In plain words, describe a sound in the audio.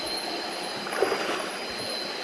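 A man splashes in the water.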